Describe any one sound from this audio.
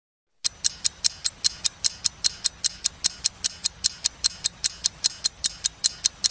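A clock ticks quickly and steadily.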